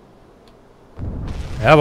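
A deck gun fires with a loud boom.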